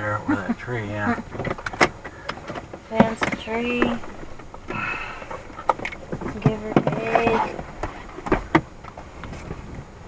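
A woman talks and laughs inside a car.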